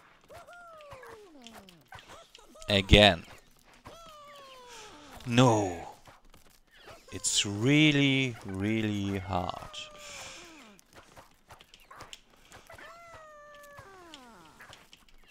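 Short cartoonish sound effects chirp and slide down in pitch.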